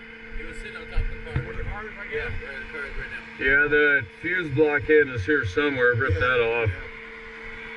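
A man talks loudly nearby over the engine.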